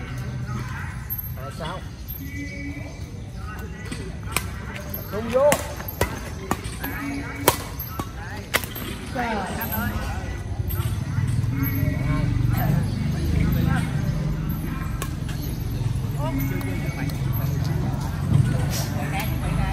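Men and women talk and call out nearby, outdoors.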